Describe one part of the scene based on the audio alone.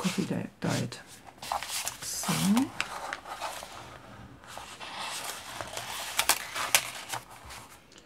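Stiff paper rustles and crinkles as a card is handled.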